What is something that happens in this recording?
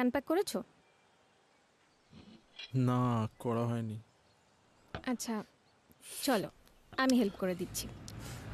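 A woman speaks calmly nearby.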